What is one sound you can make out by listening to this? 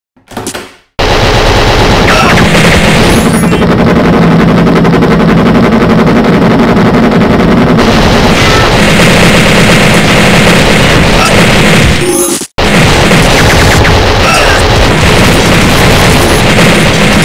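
Rapid gunfire rattles without a break.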